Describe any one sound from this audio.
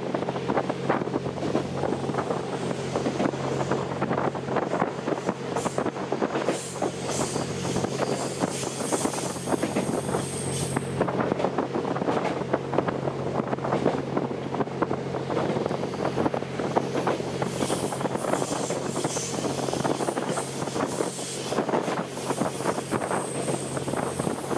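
Train wheels clatter rapidly over the rail joints.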